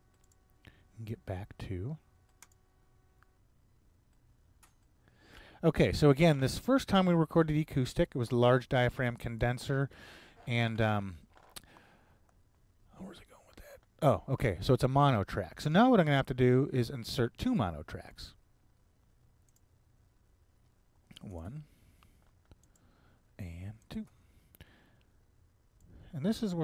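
A man speaks calmly and close into a microphone, in bursts with pauses.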